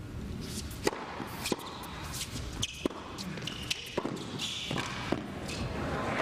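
A tennis ball is struck sharply back and forth with rackets.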